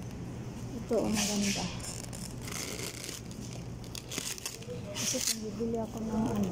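Plastic wrap crinkles as a hand touches it.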